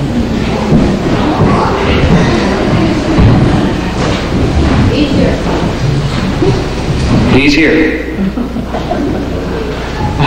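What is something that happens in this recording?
An elderly man talks calmly in a large hall.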